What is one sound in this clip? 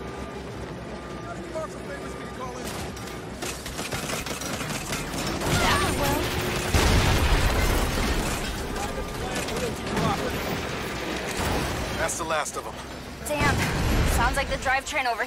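A heavy vehicle's engine rumbles and roars.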